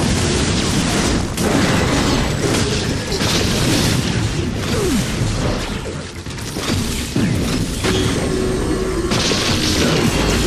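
Energy blasts crackle and explode in a video game.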